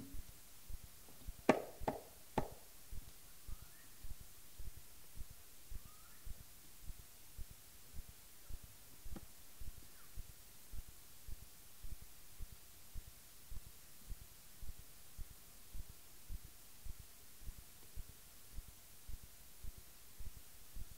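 A hand drum beats a steady low pulse.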